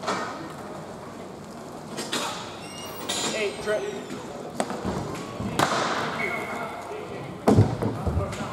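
Skate wheels roll and scrape across a hard floor in a large echoing hall.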